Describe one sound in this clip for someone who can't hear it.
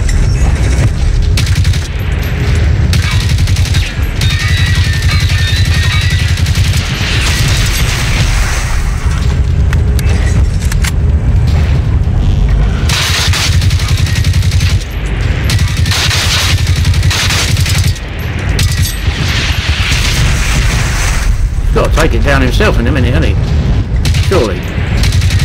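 An assault rifle fires rapid bursts of loud shots.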